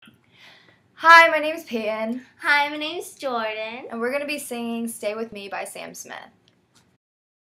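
Two young women sing together close to a microphone.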